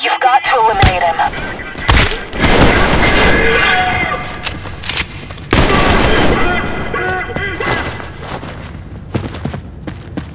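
Gunshots fire and echo loudly.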